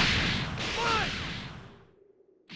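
An energy blast bursts with a loud rumbling blast.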